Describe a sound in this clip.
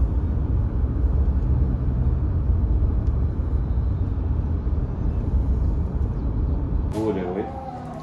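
A car rumbles along a road.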